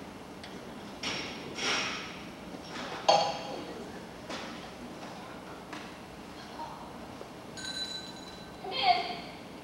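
A young woman speaks out with feeling from a stage, heard from the audience at a distance.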